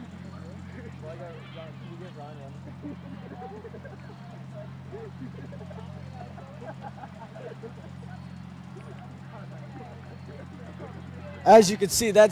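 Young women chat faintly in the distance on an open field.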